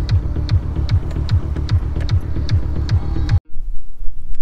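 A car engine hums from inside a moving car.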